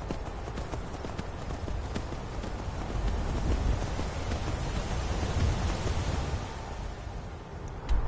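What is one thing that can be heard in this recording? Horse hooves clop steadily on a stone path.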